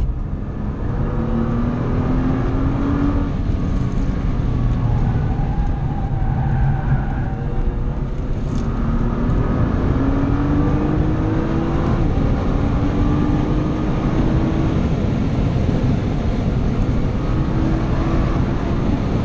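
A car engine roars loudly, revving up and dropping as gears change.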